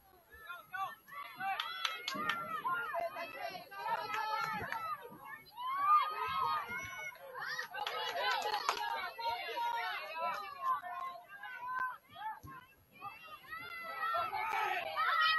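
Spectators cheer and shout from the sidelines outdoors.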